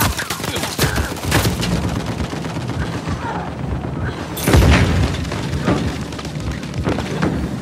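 Gunshots crack in quick bursts in a video game.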